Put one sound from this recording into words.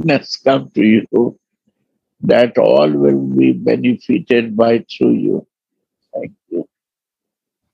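An elderly man speaks calmly into a nearby microphone.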